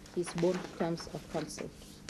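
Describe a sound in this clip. Paper rustles as a woman handles sheets.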